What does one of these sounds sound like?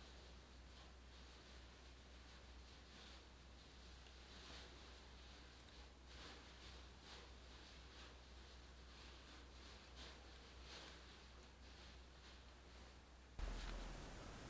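Stiff paper crinkles and rustles softly as it is peeled away.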